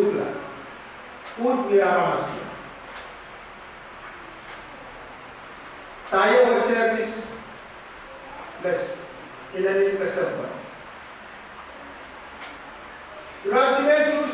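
A man speaks slowly into a microphone over loudspeakers, in an echoing hall, with pauses between phrases.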